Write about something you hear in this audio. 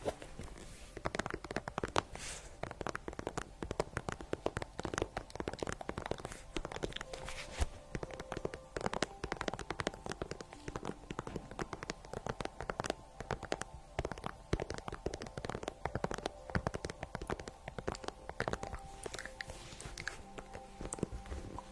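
Fingernails tap and scratch on a shiny plastic boot close to a microphone.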